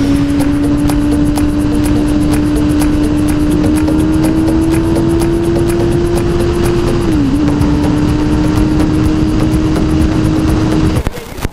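A sport motorcycle engine hums while cruising at highway speed.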